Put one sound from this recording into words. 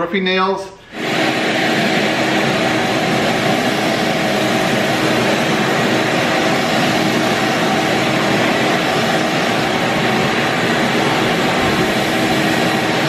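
A wet-dry vacuum roars steadily while sucking water off a floor.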